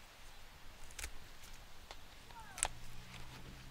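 Garden shears snip a plant stem.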